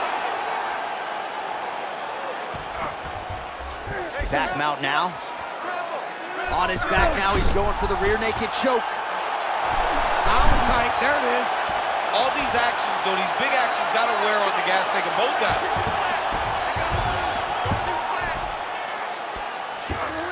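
Punches thud against a body in quick bursts.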